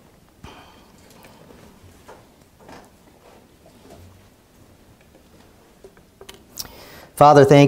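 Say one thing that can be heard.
A man speaks quietly and haltingly from a distance.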